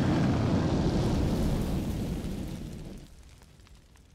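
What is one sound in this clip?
A roaring burst of flames rumbles and slowly fades.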